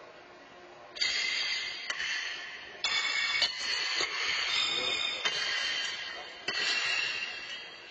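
Horseshoes clang against steel stakes in a large echoing hall.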